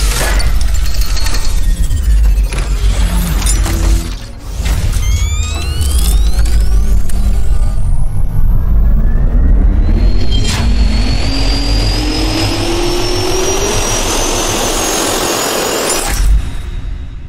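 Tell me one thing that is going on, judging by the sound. A turbine spins up with a rising whine.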